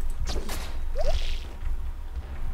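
A short bright chime rings as an item is picked up.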